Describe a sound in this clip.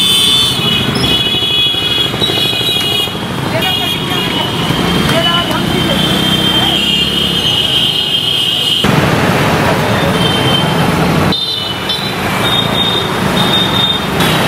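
A car drives by.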